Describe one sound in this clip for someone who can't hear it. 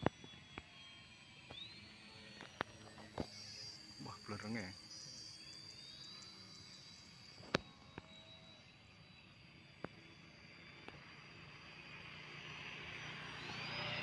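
The electric motor of a remote-control model aerobatic biplane whines high overhead, its pitch rising and falling.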